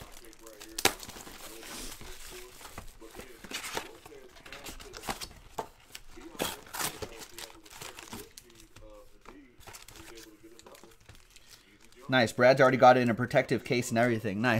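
Plastic wrapping crinkles and rustles under handling fingers.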